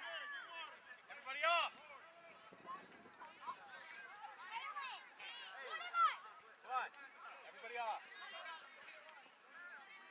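Young girls and adults shout and cheer across an open field.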